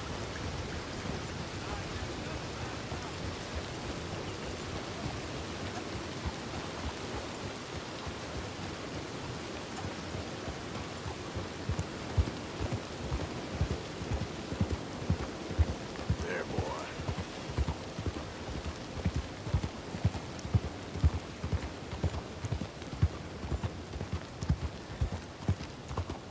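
A horse's hooves clop steadily on a road.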